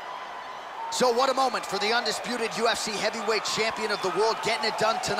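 A crowd cheers and roars.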